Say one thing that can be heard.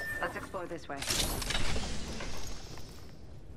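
A weapon is picked up with a sharp metallic clatter.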